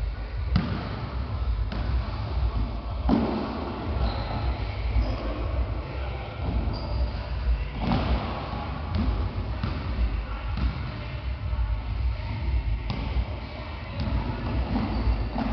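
A ball bounces on a wooden floor in a large echoing hall.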